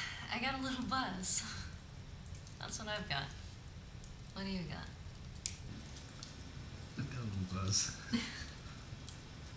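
A young woman talks and laughs softly close by.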